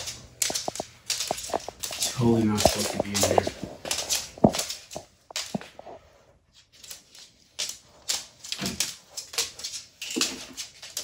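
A lizard's claws click and scratch on a wooden floor.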